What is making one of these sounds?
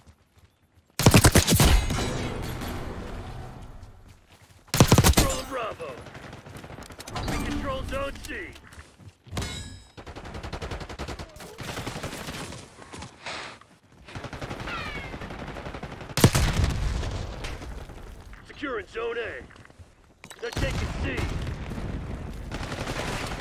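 A rifle fires in rapid loud bursts.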